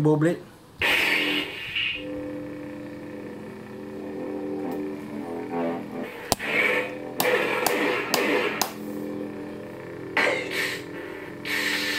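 A toy light saber swooshes as it is swung.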